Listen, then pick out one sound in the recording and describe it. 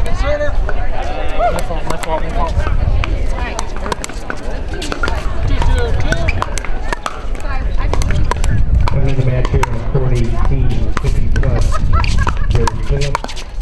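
Paddles pop sharply against a plastic ball.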